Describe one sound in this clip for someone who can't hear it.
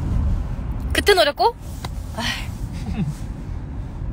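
A young woman laughs briefly close by.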